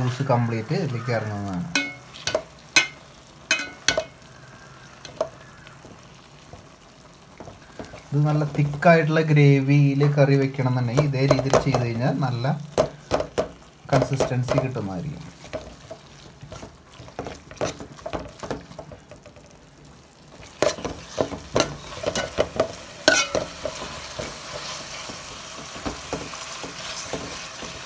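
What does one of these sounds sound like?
A metal spoon clinks and scrapes against a metal pot while stirring food.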